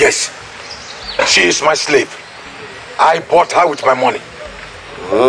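A man speaks forcefully nearby.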